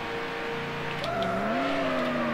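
A racing car engine drops and rises in pitch as the car slows.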